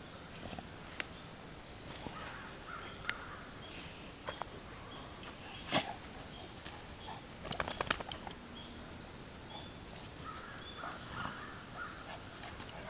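Two dogs scuffle and tug playfully in the grass.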